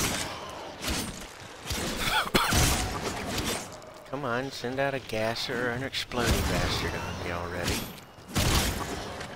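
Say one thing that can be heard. Blades slash and strike with sharp, quick hits.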